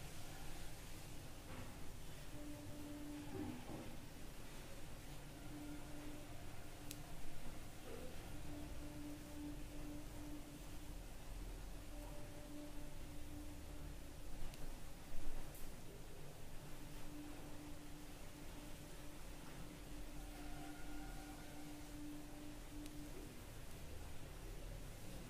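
Yarn rustles softly as a crochet hook pulls it through stitches.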